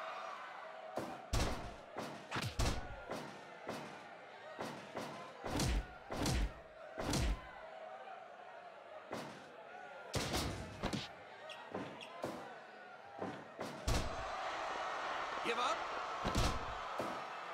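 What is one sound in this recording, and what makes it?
Heavy thuds of bodies slamming onto a wrestling mat come again and again.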